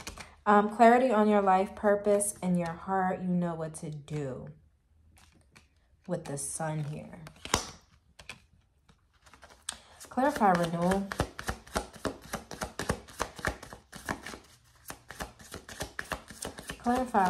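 A young woman speaks calmly, close by.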